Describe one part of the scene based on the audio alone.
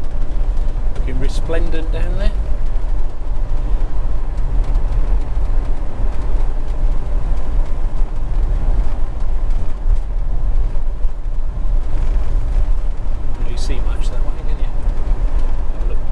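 A car drives steadily along a road with a low, constant rumble of engine and tyres.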